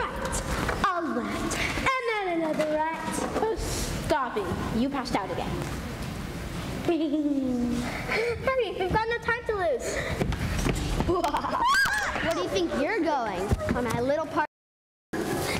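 Children speak their lines loudly on a stage in an echoing hall.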